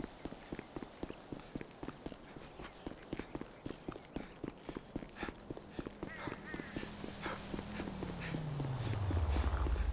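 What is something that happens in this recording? Quick footsteps run on asphalt.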